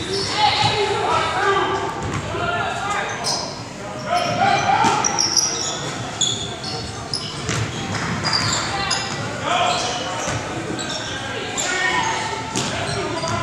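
Voices of a crowd of young people chatter nearby in a large echoing hall.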